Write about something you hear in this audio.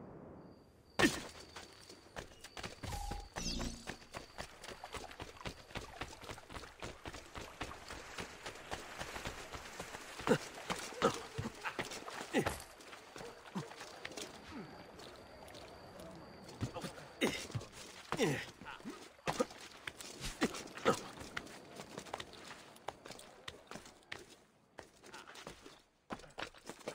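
Quick footsteps patter and thud across stone and roof tiles.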